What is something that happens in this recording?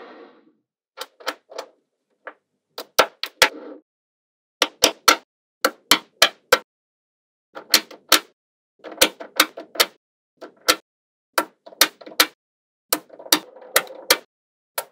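Small steel magnetic balls snap together with sharp clicks.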